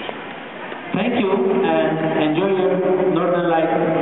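A man speaks into a microphone over a loudspeaker.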